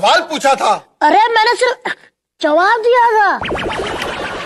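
A young boy speaks with animation, close by.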